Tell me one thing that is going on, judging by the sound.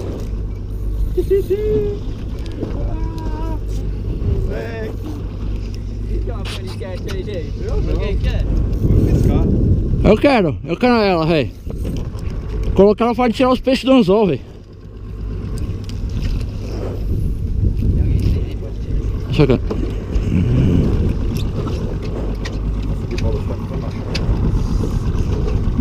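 A fishing reel clicks and whirs.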